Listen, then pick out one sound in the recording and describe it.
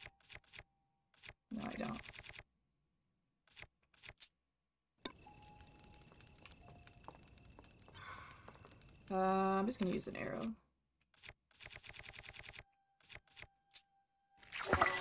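Quick soft clicks tick as a menu scrolls.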